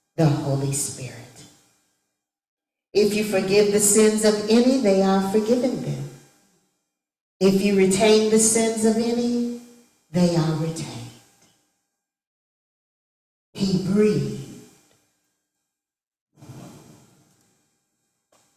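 A woman speaks with feeling through a microphone in an echoing hall, pausing between phrases.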